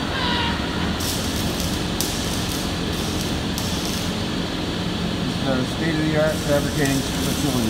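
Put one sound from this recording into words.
A welding arc crackles and sizzles.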